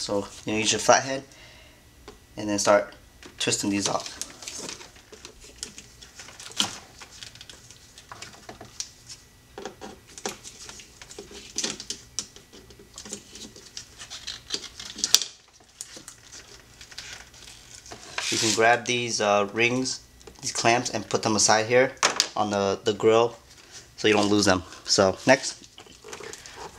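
Hard plastic parts click and rattle as they are fitted together.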